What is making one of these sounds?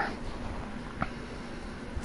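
A short electronic click sounds once.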